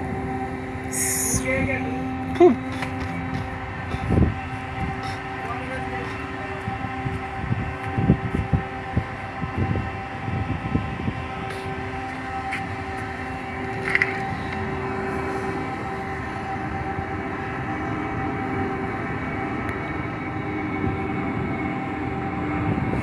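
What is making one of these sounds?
A ship's machinery hums steadily.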